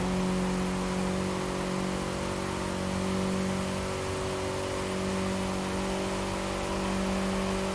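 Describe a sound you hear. A sports car engine drones steadily at high speed.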